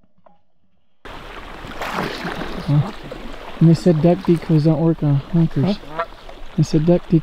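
A dog splashes as it swims through water.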